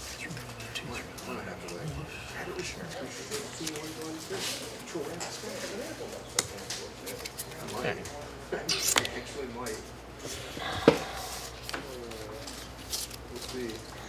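Playing cards shuffle and riffle in hands.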